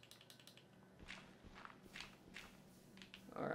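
A shovel digs into dirt with short scraping crunches.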